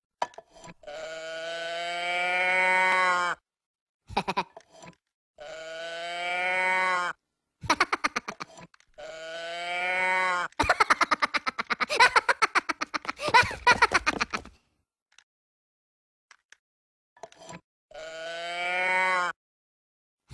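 A squeaky, high-pitched cartoon voice sings long, rising notes close by.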